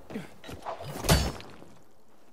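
A grappling hook shoots out on a rope with a whoosh.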